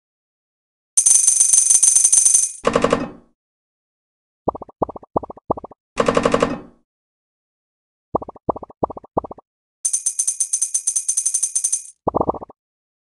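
Fast game coin jingles rattle in a quick, steady stream.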